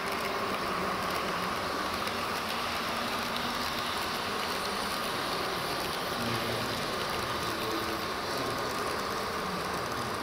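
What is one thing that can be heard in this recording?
A model train rumbles steadily along its track.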